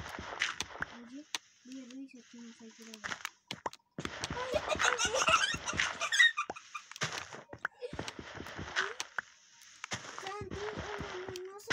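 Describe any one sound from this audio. Dirt blocks crunch repeatedly as they are dug away.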